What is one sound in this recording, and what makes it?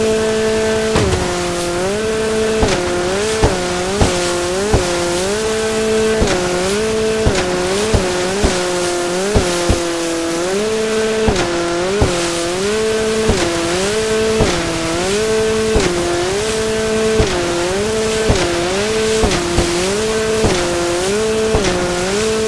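A jet ski hull slaps hard against the water again and again.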